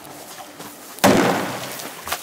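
A large body plunges into water with a loud splash.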